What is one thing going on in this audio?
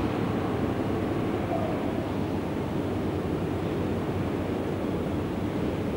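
A diesel train engine drones as it pulls slowly into a station.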